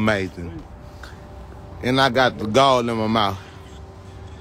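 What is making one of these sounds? A young man speaks with animation close to a phone microphone.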